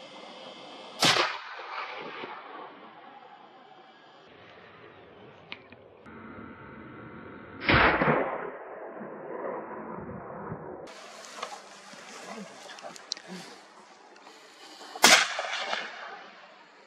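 A rifle fires loud shots that echo across the hills.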